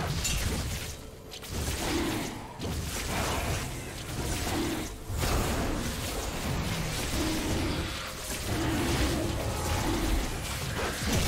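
Magical attacks crackle and whoosh as creatures fight.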